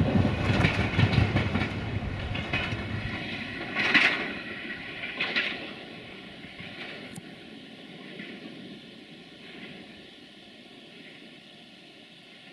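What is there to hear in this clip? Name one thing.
A diesel train rumbles past close by and fades into the distance.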